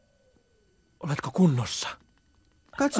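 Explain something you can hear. A young man asks a question with concern.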